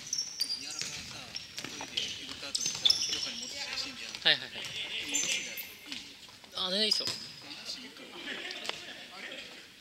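Several young men shout and call out to each other across an echoing hall.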